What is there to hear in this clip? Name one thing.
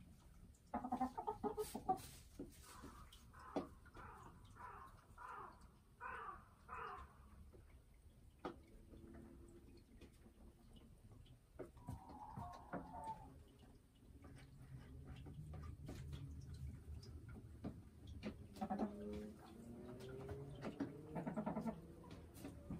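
A hen clucks in a low, repeated murmur close by.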